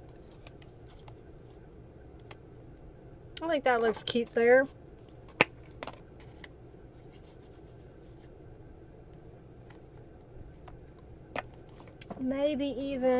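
Paper rustles and taps as pages are handled.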